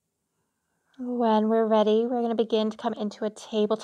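A woman speaks slowly and calmly nearby.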